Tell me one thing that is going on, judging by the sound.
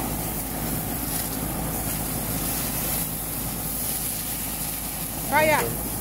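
Flames flare up with a soft roar.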